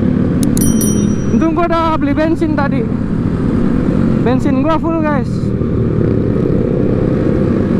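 Motorcycle engines rumble steadily on a road.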